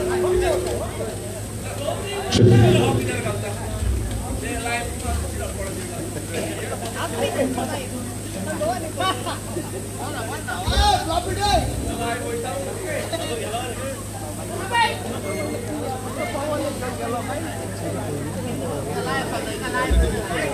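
A man speaks with animation into a microphone over loudspeakers, outdoors.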